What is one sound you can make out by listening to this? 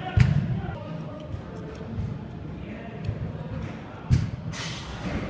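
A soccer ball is kicked with dull thumps.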